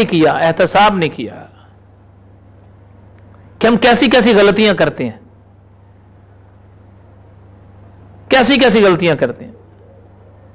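An elderly man speaks calmly and clearly into a microphone, in short phrases with pauses.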